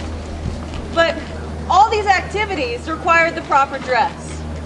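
A young woman speaks loudly and clearly outdoors, as if performing.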